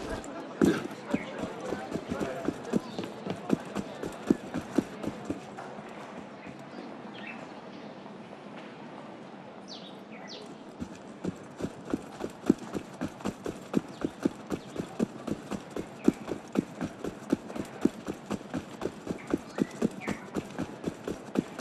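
Footsteps run quickly over cobblestones.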